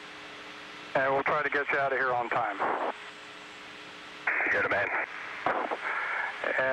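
A man speaks calmly, heard over a radio loudspeaker.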